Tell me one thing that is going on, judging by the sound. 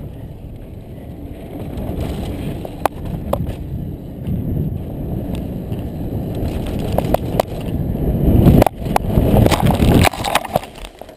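Bike tyres rumble and crunch over a dirt trail at speed.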